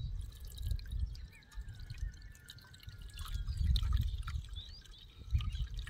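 Liquid trickles from a bowl through a strainer into a metal pot.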